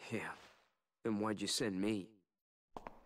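A young man asks a question.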